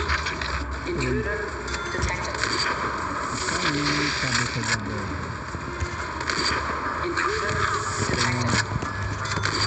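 Sniper rifle shots crack one after another.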